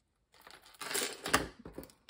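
A sheet of card rustles as it is handled.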